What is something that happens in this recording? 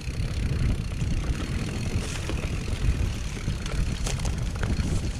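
Wind rumbles loudly past a moving bike.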